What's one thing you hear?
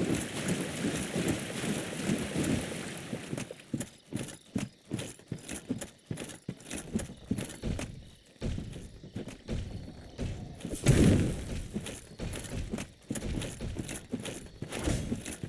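Armoured footsteps clank and thud on soft ground.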